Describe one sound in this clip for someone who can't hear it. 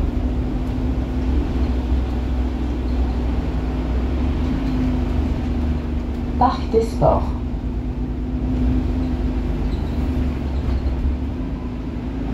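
Tyres of a city bus hiss on a wet road.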